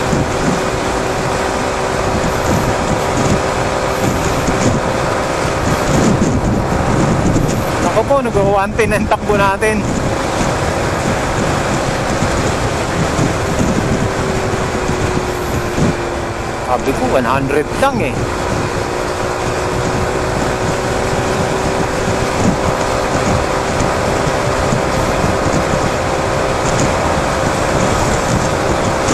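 Wind rushes past as the motorcycle rides.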